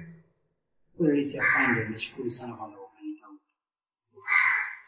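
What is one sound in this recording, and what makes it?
A young man speaks calmly in reply.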